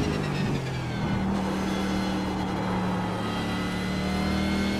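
A race car engine drones at lower revs and slowly builds up again.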